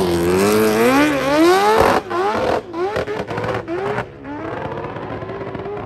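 A motorcycle engine roars at full throttle, rising in pitch through quick gear changes, then fades into the distance.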